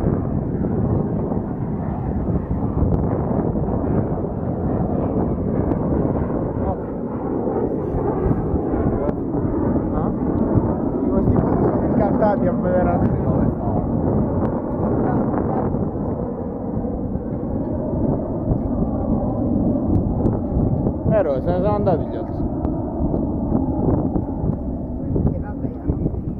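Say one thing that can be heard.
Strong wind rumbles and buffets steadily outdoors over open water.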